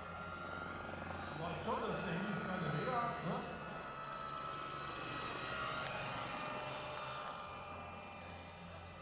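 A model helicopter whirs overhead with a high engine whine that rises and falls.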